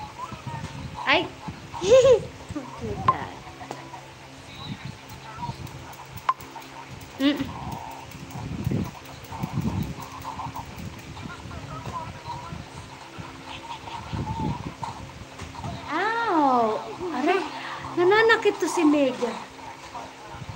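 A young child squeals and laughs, close by.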